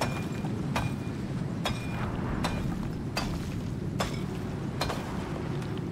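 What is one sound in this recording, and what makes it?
A pickaxe strikes rock in quick, sharp blows.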